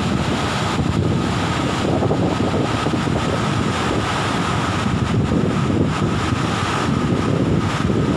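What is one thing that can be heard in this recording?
Rushing water roars steadily over rocky falls.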